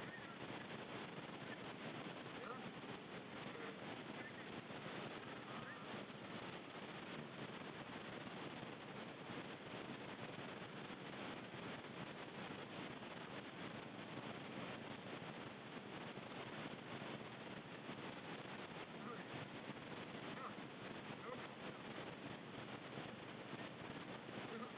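Wind rushes steadily across the microphone.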